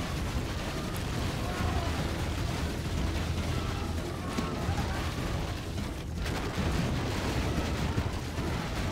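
A large body of soldiers marches with a steady tramp of many feet.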